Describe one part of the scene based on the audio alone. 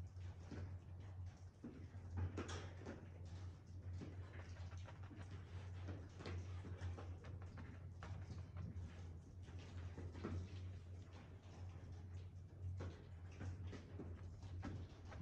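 A brush dabs and scrapes against canvas.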